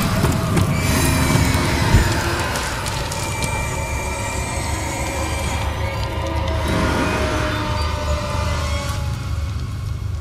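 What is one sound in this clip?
Sparks and debris crackle and hiss, then fade.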